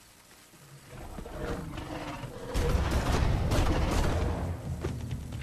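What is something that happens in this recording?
A creature roars close by.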